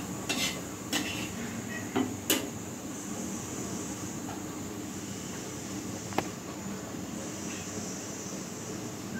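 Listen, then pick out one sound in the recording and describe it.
Oil sizzles steadily in a pan.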